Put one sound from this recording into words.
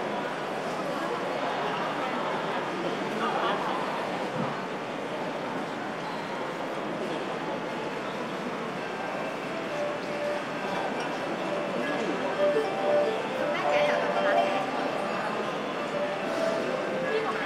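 A plucked zither plays a lively tune.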